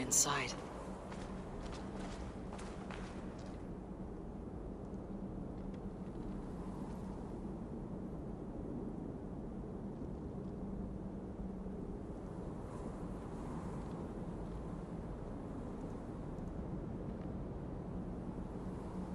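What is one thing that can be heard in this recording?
Leaves and branches rustle as someone pushes through dense foliage.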